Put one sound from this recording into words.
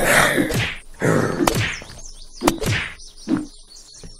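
Punches land with dull thuds.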